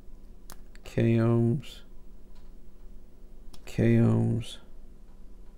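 A multimeter beeps briefly.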